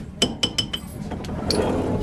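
Metal tools clink sharply a few times.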